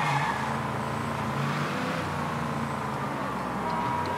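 Tyres screech on the road during a sharp turn.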